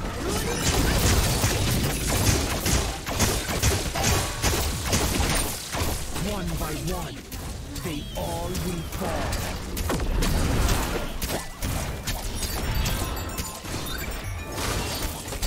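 Magical blasts and impacts crash and boom in quick succession.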